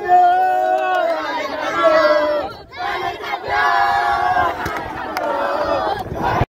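A young man talks cheerfully into a microphone, close by.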